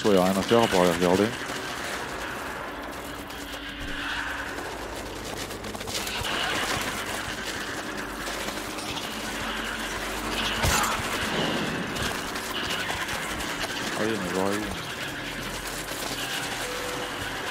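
A man talks into a close microphone.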